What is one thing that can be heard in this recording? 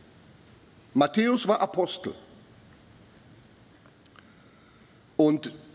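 An older man speaks calmly into a microphone in a large echoing hall.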